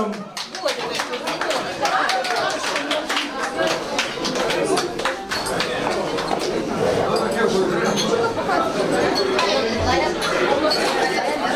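Several men and women talk and laugh loudly in a lively crowd.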